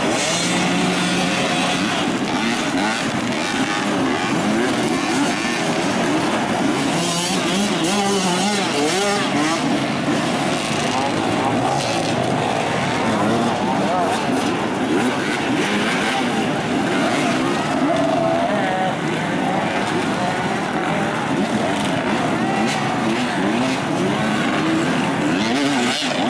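A crowd of onlookers chatters and calls out nearby.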